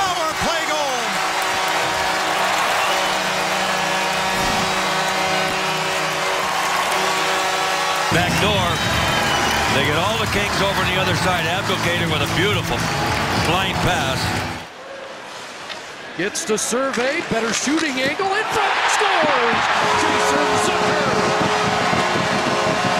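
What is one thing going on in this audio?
A large crowd cheers loudly in an echoing arena.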